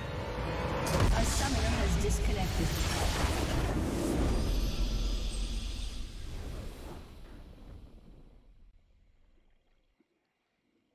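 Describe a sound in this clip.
A triumphant game fanfare swells and then slowly fades out.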